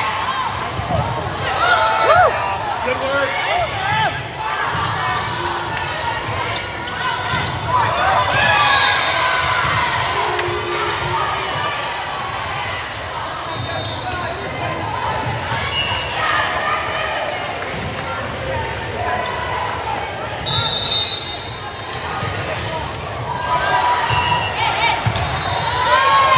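Players shout and call out in a large echoing gym.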